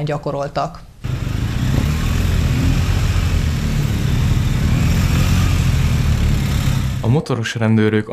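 Motorcycle engines rumble and rev nearby.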